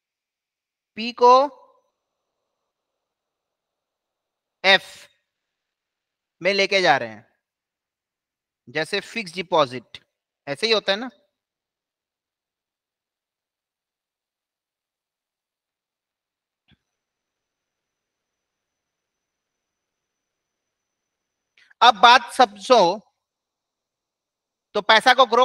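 A man speaks calmly into a close microphone, explaining in short phrases with pauses.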